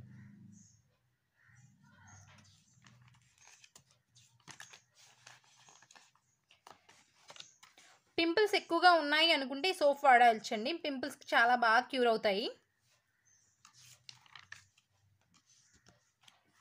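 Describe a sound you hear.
Glossy magazine pages rustle as they are turned by hand.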